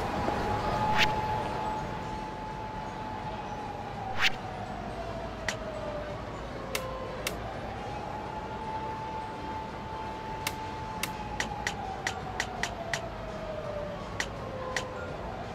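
Short menu clicks sound one after another.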